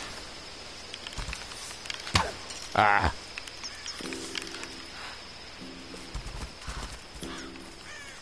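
A bowstring creaks as a bow is drawn taut.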